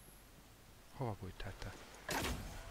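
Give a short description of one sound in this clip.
A man speaks close to a microphone.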